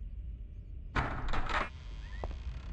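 A heavy wooden door scrapes and creaks open.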